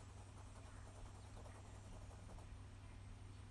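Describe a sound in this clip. A brush scratches softly across paper.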